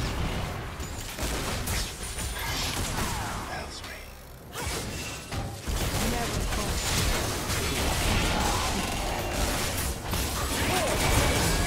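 Magic spells whoosh, zap and crackle in quick bursts.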